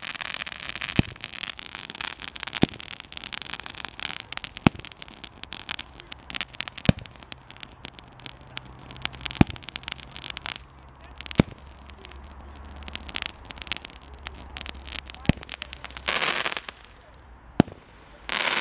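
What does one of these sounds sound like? Firework charges pop sharply at intervals.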